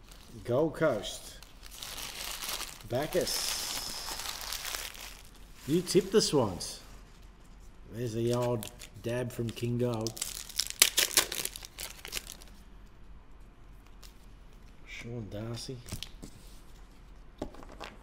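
Trading cards rustle and flick against each other.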